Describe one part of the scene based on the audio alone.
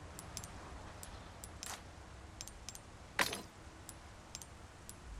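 Short soft clicks sound as menu selections change.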